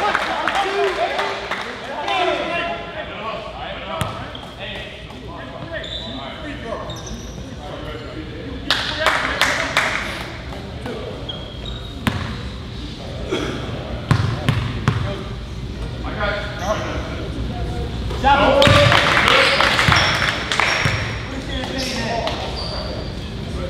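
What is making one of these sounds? Voices of spectators and players chatter in a large echoing gym.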